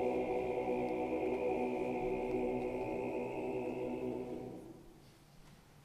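A men's choir sings in harmony in a large echoing hall.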